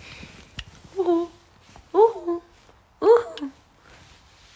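A young woman talks softly in a high, cooing voice close by.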